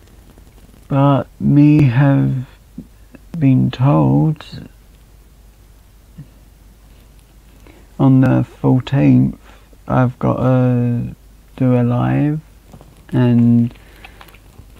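A young man talks casually into a nearby microphone, in short bursts with pauses.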